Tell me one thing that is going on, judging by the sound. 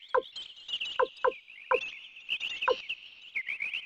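Short electronic blips sound as a menu cursor moves.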